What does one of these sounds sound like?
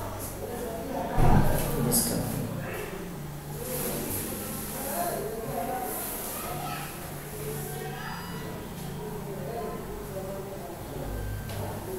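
A young boy talks calmly nearby.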